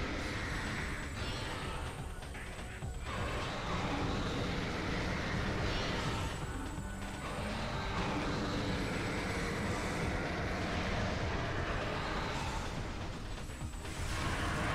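A monster roars and screeches.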